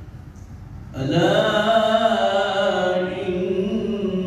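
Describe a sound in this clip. A man chants loudly in a long, drawn-out voice through a microphone, with a slight echo.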